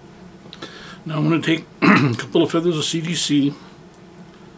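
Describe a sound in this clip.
A man speaks briefly and calmly close by.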